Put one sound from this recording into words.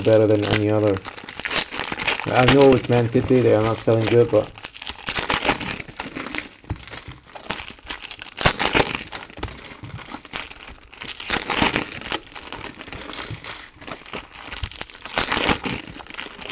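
Foil wrappers crinkle and tear as packs are ripped open.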